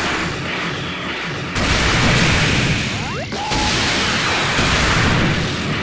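Glowing energy balls whoosh through the air.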